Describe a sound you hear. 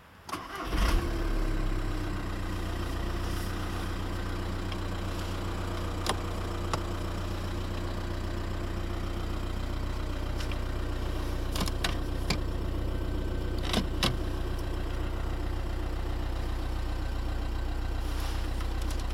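A four-cylinder turbodiesel car engine idles.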